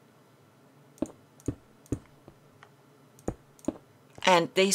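Blocks are placed with short, soft clicks.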